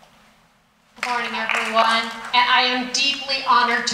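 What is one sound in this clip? A woman speaks with animation into a microphone over loudspeakers in a large hall.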